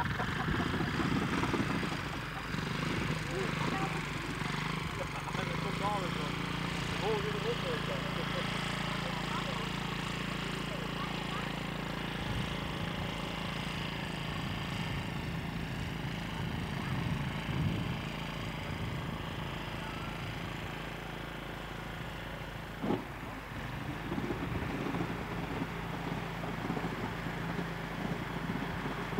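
A small engine drones steadily as an amphibious vehicle moves through water.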